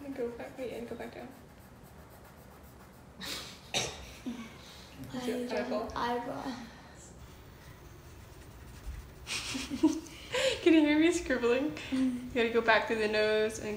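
Pencils scratch on paper.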